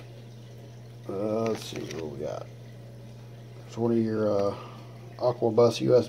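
Cables rustle and clatter as they are handled.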